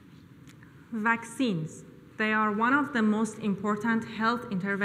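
A young woman speaks calmly into a microphone in a large hall.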